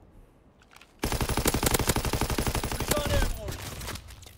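A machine gun fires a rapid burst of shots.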